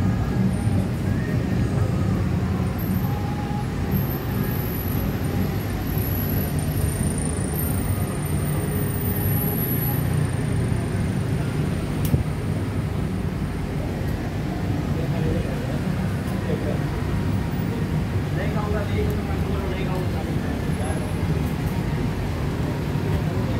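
Cars and motorbikes pass by on a busy street.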